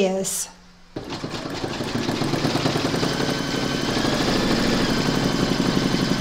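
An embroidery machine hums and stitches with a fast, steady rattle.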